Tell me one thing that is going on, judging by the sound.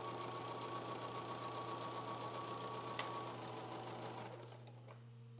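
A sewing machine runs quickly, then stops.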